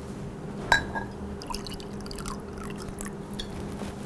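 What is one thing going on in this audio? Water pours into a jug.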